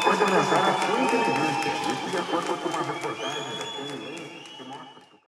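A large crowd cheers and sings loudly, then fades away.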